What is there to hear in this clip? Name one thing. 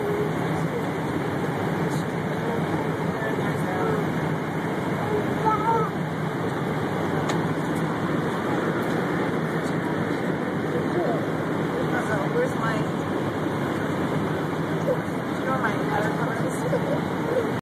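A steady low roar of aircraft engines fills the cabin.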